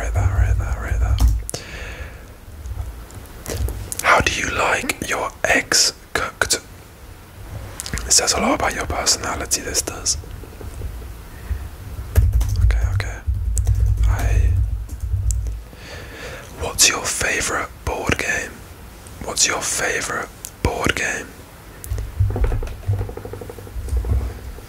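A young man whispers close to the microphone.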